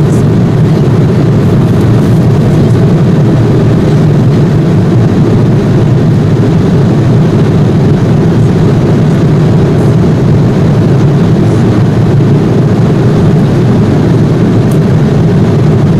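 A jet engine drones steadily inside an aircraft cabin.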